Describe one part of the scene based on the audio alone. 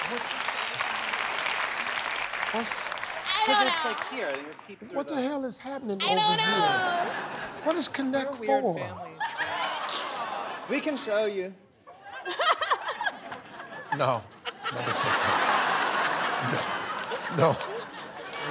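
A group of adults laughs loudly.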